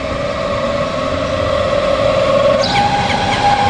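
A train horn blows a two-tone blast.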